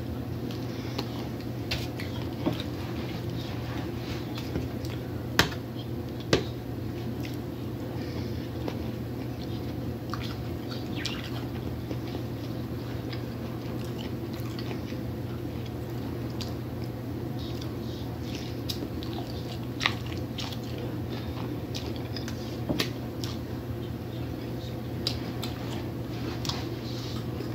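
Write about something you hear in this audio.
A fork clinks and scrapes against a metal dish.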